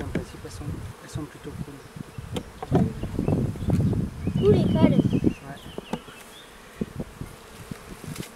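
A metal hive tool scrapes and creaks a wooden frame loose.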